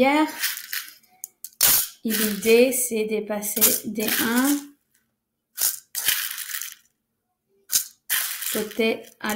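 A spoon scrapes and taps inside a plastic bowl.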